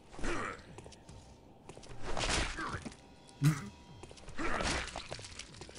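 An axe strikes with a heavy thud.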